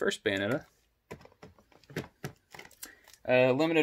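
Plastic game cases clack as they are pulled from a shelf.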